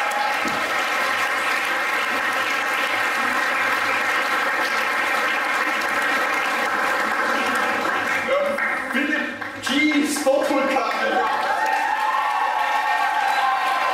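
A group of women clap their hands.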